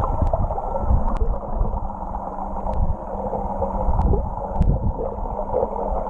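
Swim fins kick and churn the water.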